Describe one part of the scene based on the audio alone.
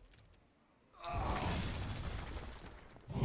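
A magical chime and whoosh ring out in a game.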